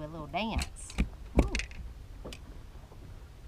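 Items knock against a boat deck.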